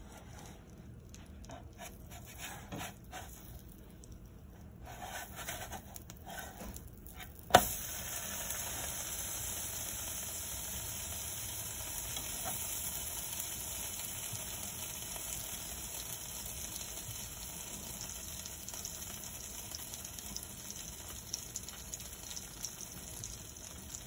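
Butter sizzles and crackles in a frying pan.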